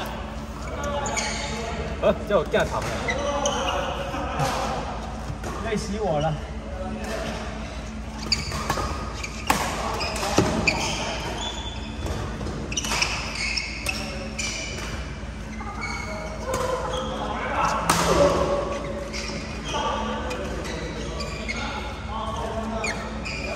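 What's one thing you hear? Young men call out and talk during play in a large echoing hall.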